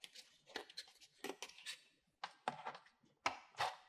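A plastic lid snaps and knocks into place.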